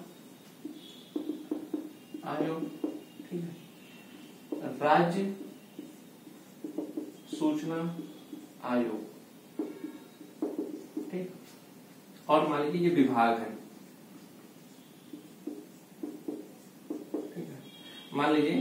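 A young man speaks calmly, explaining at length.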